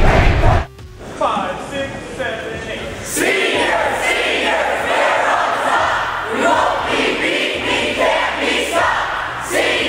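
Young men and women chant and shout together loudly.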